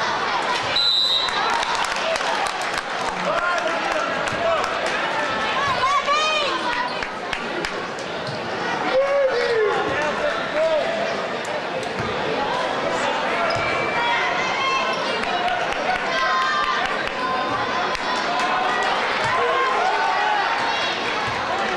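A crowd chatters and shouts throughout a large echoing gym.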